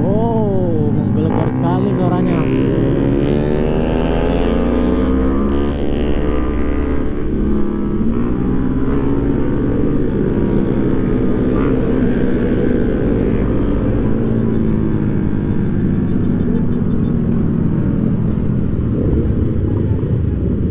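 A motorcycle engine roars close by, revving up and down as it rides.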